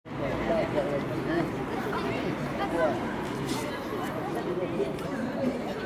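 A crowd of men and women chatter outdoors at a distance.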